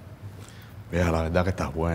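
A woman speaks sharply.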